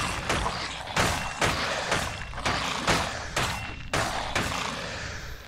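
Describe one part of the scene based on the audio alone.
Weapon blows strike skeletons in quick, heavy hits.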